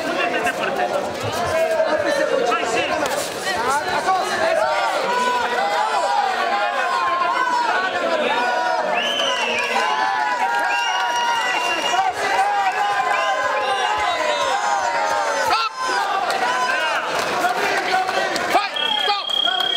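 A crowd of children and adults shouts and cheers in a large echoing hall.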